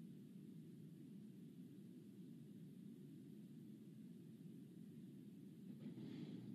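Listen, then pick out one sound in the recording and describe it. A steady low hum of ventilation fans fills the room.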